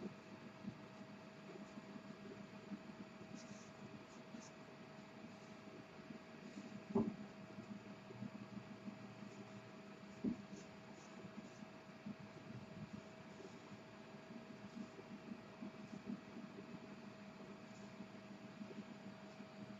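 A pen scratches and scrapes softly on paper.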